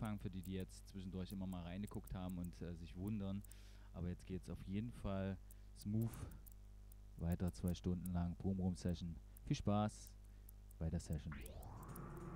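A man sings loudly into a microphone nearby.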